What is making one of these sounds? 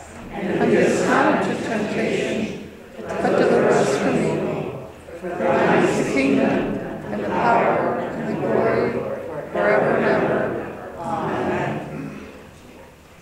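A woman speaks calmly through a microphone in an echoing room.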